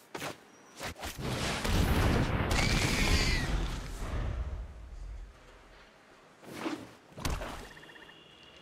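Whooshing game sound effects play as cards are placed on the board.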